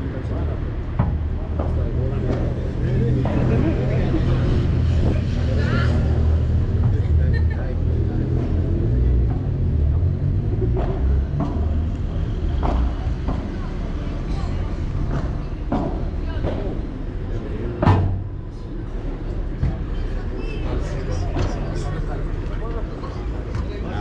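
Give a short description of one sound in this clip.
Padel rackets strike a ball with sharp pops.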